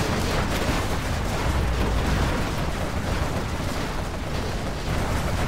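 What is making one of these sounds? Gunfire crackles rapidly.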